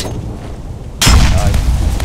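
A knife strikes a hard surface with a sharp clang.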